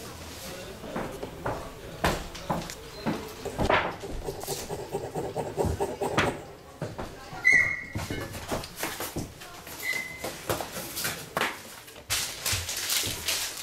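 Metal clamps click and scrape against wood as fingers adjust them.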